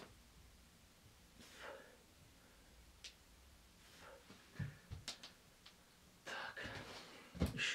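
A young man breathes hard with effort.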